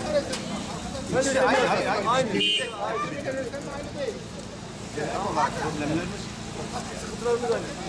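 A young man speaks insistently nearby.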